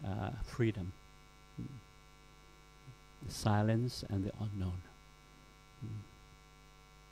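A middle-aged man speaks with animation, close to a microphone.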